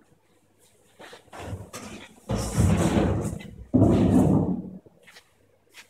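Cardboard panels scrape and thump as they are pulled away.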